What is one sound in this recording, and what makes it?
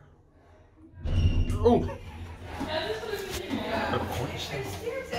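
A man speaks close by with animation.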